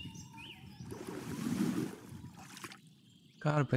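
A fish splashes out of the water.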